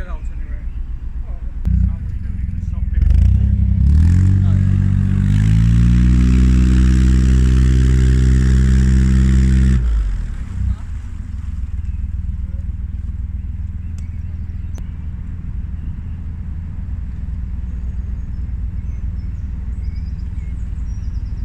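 A boat engine rumbles, revs up to a loud drone, then drops back to a steady low chug.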